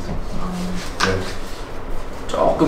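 A young man speaks briefly in a puzzled tone.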